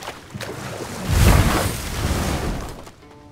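A wooden boat scrapes and thumps onto a shore.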